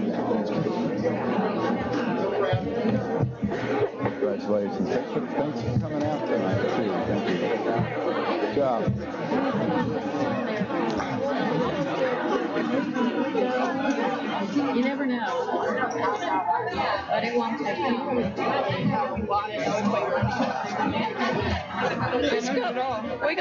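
Many girls and adults chatter and greet each other.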